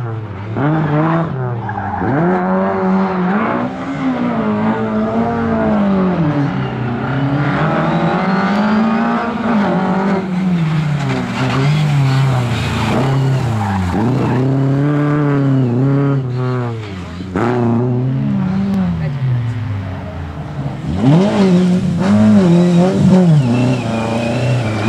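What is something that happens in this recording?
A rally car engine revs hard, rising and falling as the car skids through the turns.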